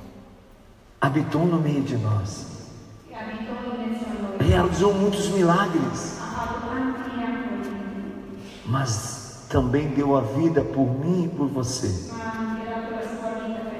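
A man sings into a microphone, heard through loudspeakers in a large echoing hall.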